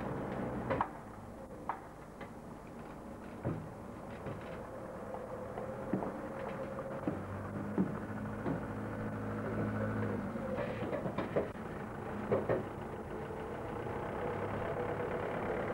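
A heavy lorry engine rumbles steadily nearby.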